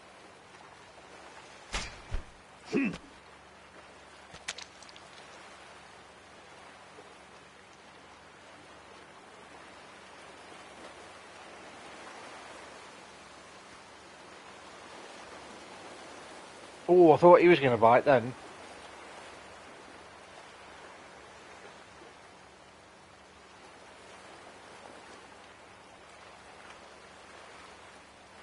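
Water laps and swirls gently.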